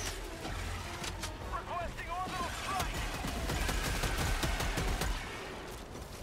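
Heavy gunfire roars in a loud rush.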